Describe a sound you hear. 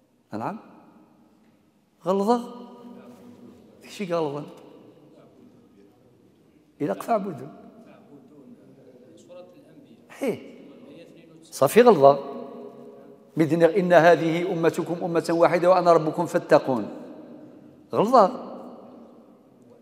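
An elderly man speaks calmly into a microphone, in short bursts with pauses, in a room with some echo.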